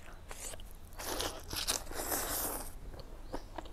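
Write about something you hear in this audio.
A young woman slurps noodles loudly, close to a microphone.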